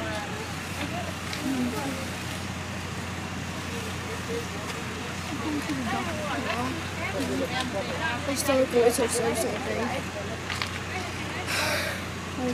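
Several women and men talk over one another nearby, outdoors.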